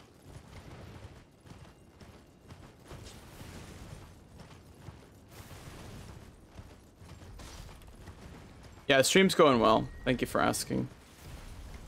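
A horse's hooves thud steadily over snow.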